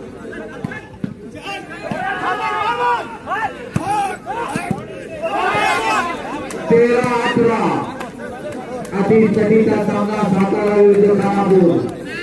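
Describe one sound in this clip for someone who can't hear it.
Young men on a court call out to each other.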